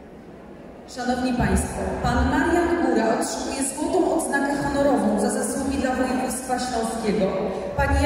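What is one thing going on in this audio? An elderly woman speaks through a loudspeaker.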